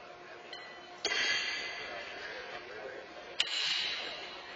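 A horseshoe lands with a clang, echoing in a large hall.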